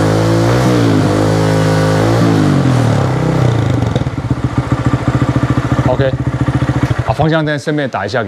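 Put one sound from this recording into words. A motorcycle engine idles and revs loudly close by.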